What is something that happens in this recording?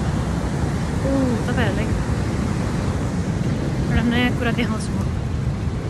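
A young woman speaks briefly and close by.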